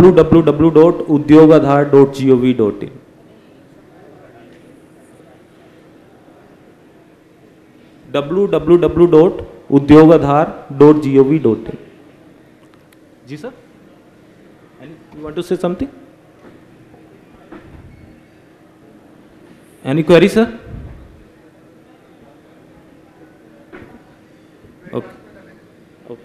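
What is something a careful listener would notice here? A young man speaks through a microphone in pauses, amplified over loudspeakers.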